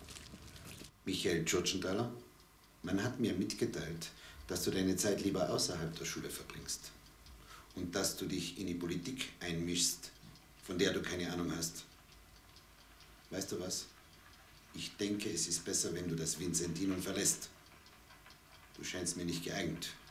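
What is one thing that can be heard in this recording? A young man speaks calmly and firmly nearby.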